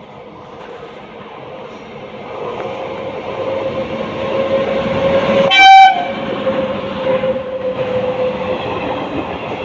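An electric locomotive approaches and rumbles past, growing louder.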